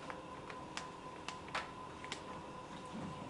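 Papers and objects tap and knock on a table.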